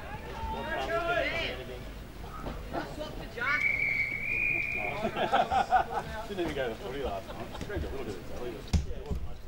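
Young players shout to each other outdoors.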